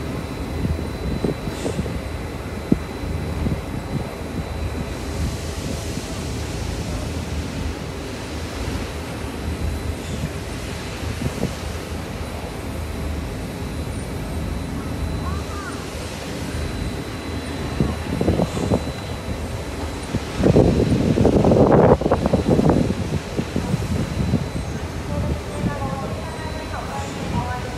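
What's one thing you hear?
A turntable rumbles low and steadily as it slowly turns a locomotive.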